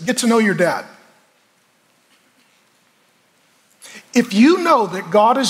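A middle-aged man speaks calmly and earnestly into a microphone, with pauses.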